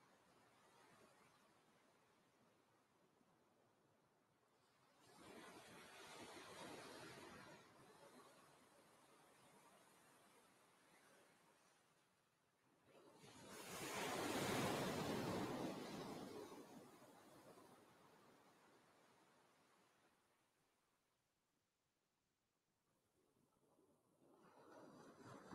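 Ocean waves surge onto a beach and wash back out.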